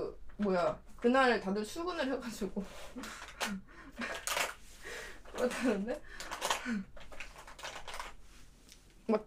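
A young woman talks animatedly close to a microphone.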